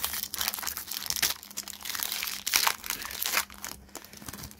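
A foil wrapper crinkles and rustles close by as hands tear it open.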